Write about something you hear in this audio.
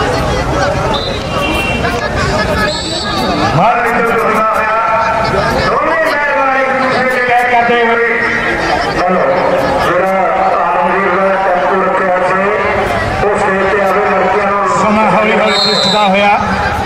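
A man speaks loudly and with animation through a loudspeaker.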